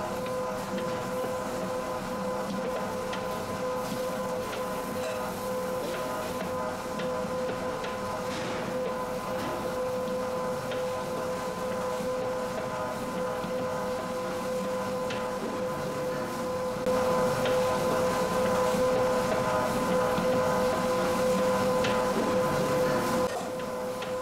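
A metal scraper clinks against a steel bowl.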